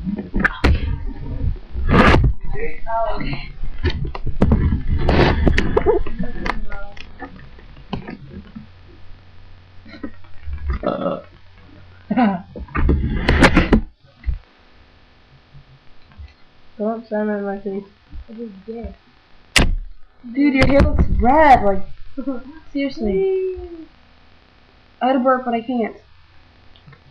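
A teenage boy talks and laughs close to a microphone.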